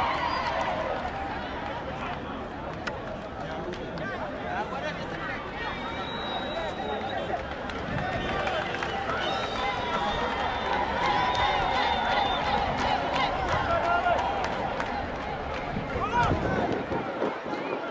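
Men shout and call out to each other on an outdoor football pitch.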